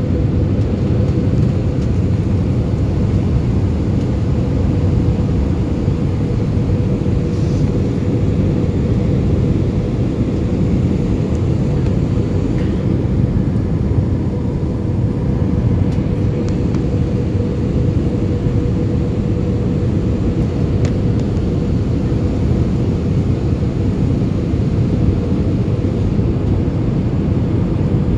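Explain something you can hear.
A jet engine roars steadily with a low, constant drone heard from inside the cabin.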